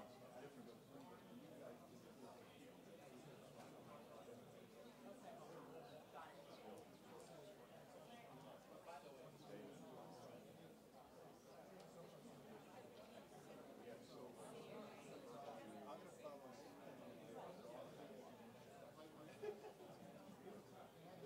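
A crowd of men and women chatter in a large room.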